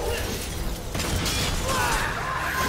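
A blast bursts with a loud boom.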